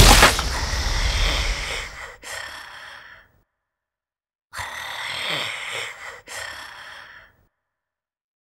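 A monster growls and snarls in two bursts.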